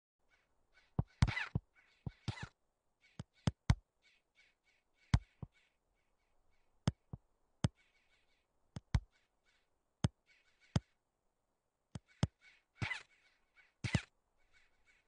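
A football is kicked several times with sharp thuds.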